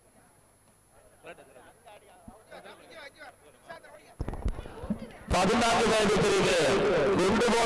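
A crowd of boys and young men chatters outdoors.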